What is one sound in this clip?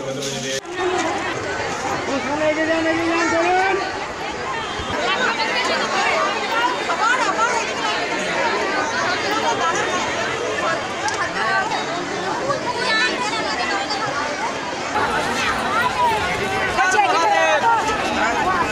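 A large crowd of men and women chatter all around, outdoors.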